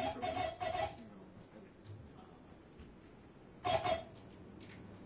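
Electronic sounds from turntables play in short, loud bursts with quiet gaps between them.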